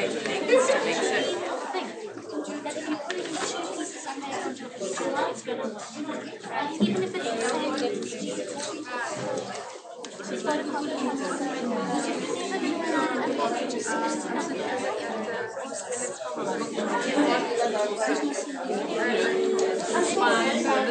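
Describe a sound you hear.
Many men and women chat at once close by.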